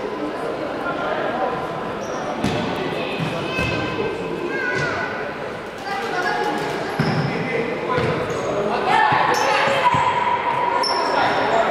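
Sports shoes squeak on a wooden court.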